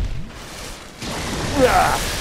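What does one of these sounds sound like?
A magical blast crackles and bursts.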